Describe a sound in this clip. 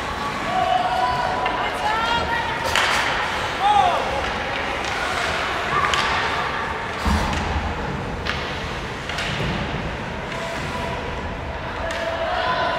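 Spectators shout and cheer nearby in a large echoing rink.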